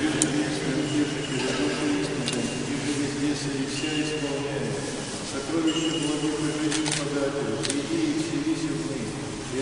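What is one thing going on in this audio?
An elderly man chants in a deep voice in a large echoing hall.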